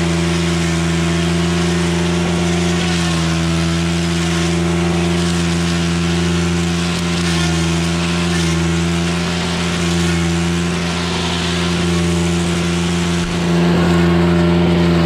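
A trimmer line whips and slashes through dense weeds.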